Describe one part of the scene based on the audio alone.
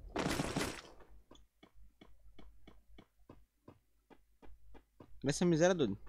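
Quick footsteps patter steadily in a game.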